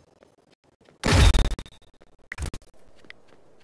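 A game character swings a sword with loud whooshing hits.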